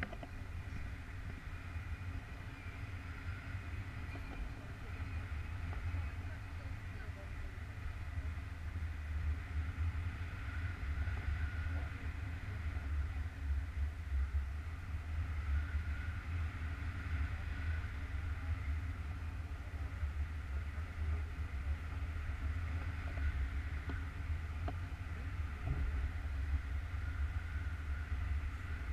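Wind buffets a microphone loudly and steadily outdoors.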